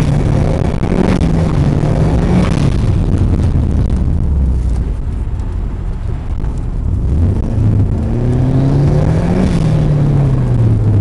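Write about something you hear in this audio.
Tyres rumble over a snowy road.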